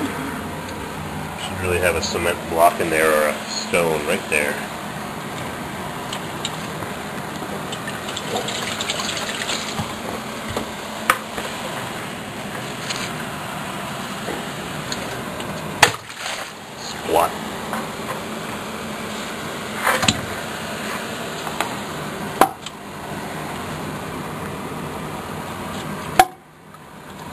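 A fan unit hums steadily nearby.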